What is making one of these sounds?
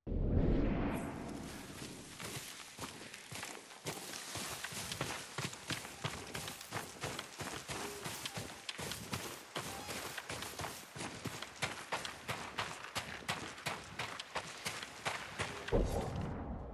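Footsteps run quickly through rustling grass and over loose stones.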